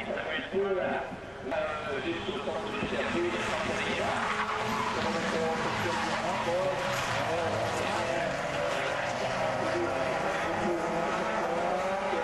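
Rally car engines roar and rev nearby.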